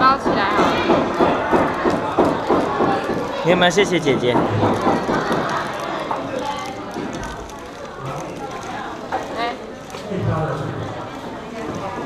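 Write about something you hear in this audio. Plastic wrapping crinkles close by.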